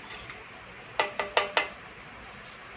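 A metal spoon clinks against a pot.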